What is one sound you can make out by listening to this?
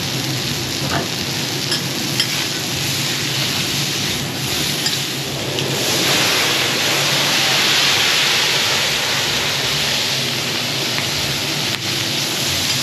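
Food sizzles loudly on a hot griddle.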